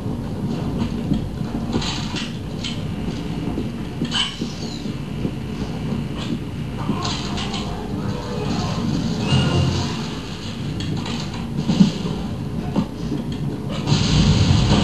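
Game sound effects and music play through a loudspeaker in a room.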